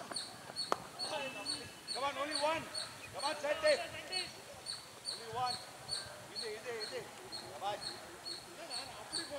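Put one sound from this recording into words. Men shout and call out to each other across an open field.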